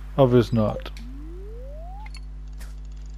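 A rising electronic tone plays as a fishing cast powers up.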